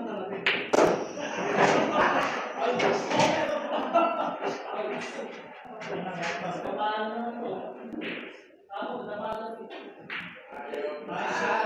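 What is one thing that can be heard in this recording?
Several men talk and chatter nearby in a room with some echo.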